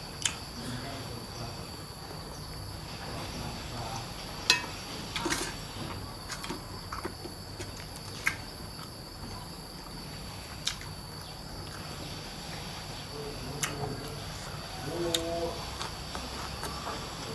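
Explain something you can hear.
A young man chews food with wet, smacking sounds close up.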